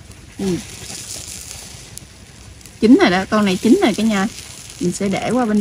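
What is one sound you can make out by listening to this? Metal tongs clatter against the grill and shells.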